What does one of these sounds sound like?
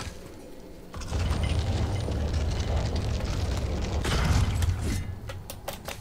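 A heavy wooden mechanism grinds and rumbles as it is pushed.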